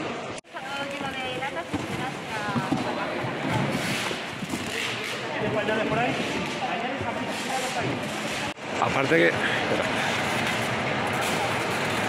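Cardboard boxes rustle and scrape.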